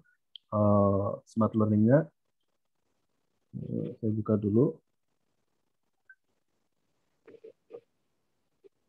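A man speaks through an online call, with pauses.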